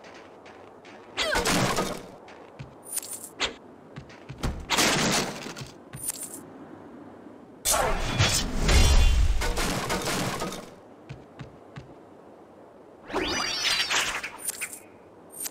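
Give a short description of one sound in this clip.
Punches and kicks land with dull thuds.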